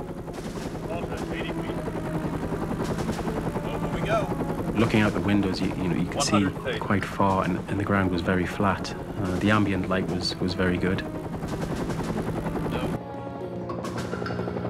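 A helicopter engine drones steadily with a deep hum.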